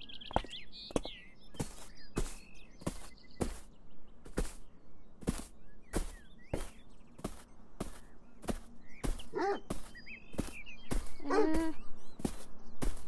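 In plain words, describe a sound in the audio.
Footsteps fall steadily on grass at a quick pace.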